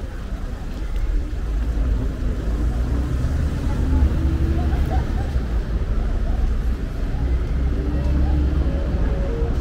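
Outdoors, a steady low rumble of city traffic and wind fills the air.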